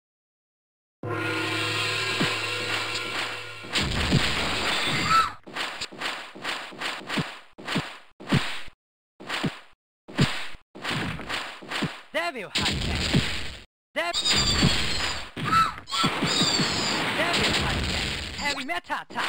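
Video game music plays.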